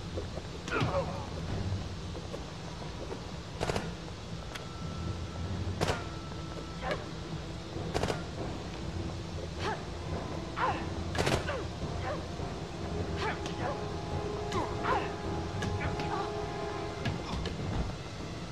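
Sharp blows and thuds land in a fight.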